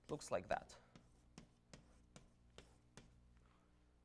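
Chalk taps on a blackboard.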